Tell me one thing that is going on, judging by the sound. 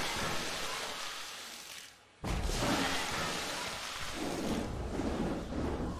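Plastic bricks clatter and scatter as an object breaks apart.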